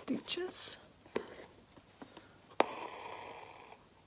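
A plastic embroidery hoop clicks as it is adjusted.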